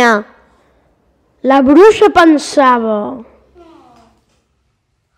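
A young child speaks loudly and with animation in an echoing room.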